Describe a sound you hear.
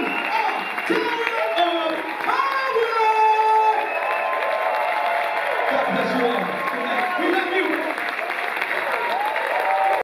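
A saxophone plays along with the band.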